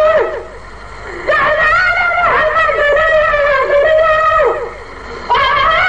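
An elderly man chants in a long, melodic voice through a microphone.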